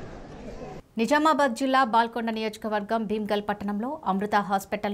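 A woman reads out the news clearly through a microphone.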